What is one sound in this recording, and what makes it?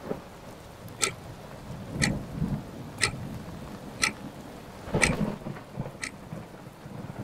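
A wall clock ticks loudly once a second.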